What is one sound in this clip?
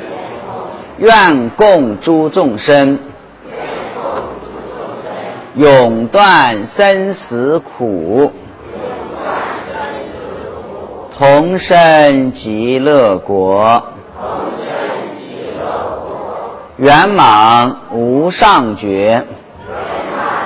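A man chants slow melodic phrases through a microphone, with an echo.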